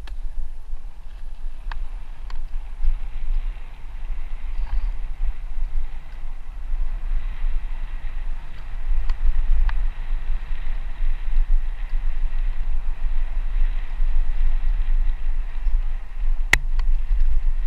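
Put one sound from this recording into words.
Bicycle tyres roll steadily over a dirt path.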